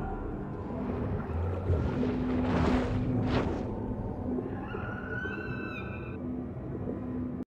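Deep underwater rumbling churns steadily.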